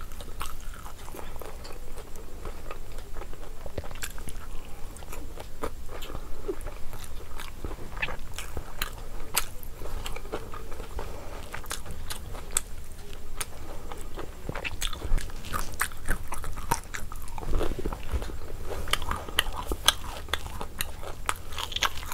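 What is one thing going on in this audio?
Crunchy food crackles and snaps close by.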